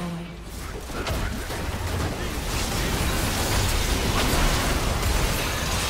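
Magic spells crackle and boom in a fast game battle.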